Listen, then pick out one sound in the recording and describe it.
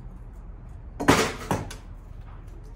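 A plastic bin lid thumps open.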